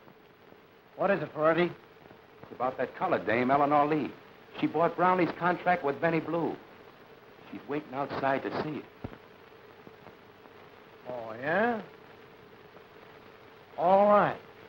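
A middle-aged man answers in a calm voice.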